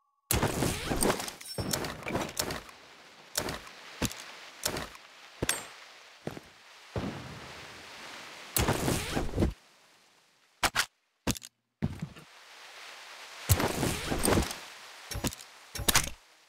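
Game menu items click and rustle as gear is moved around.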